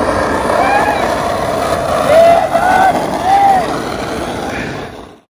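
Skateboard wheels roll and rumble over rough asphalt.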